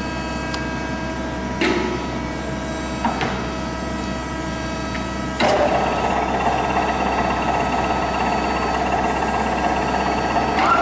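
A milling machine hums steadily.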